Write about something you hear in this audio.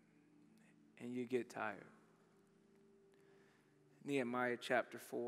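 A young man speaks calmly into a headset microphone, in short bursts with pauses.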